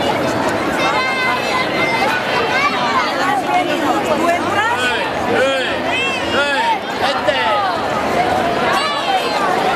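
Children's voices chatter and call out close by.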